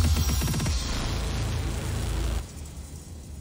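Loud game music plays and cuts off.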